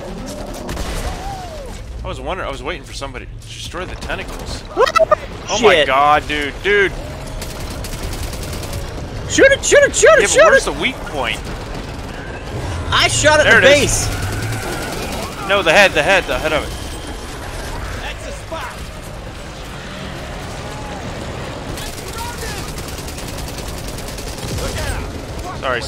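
Automatic gunfire rattles in quick bursts.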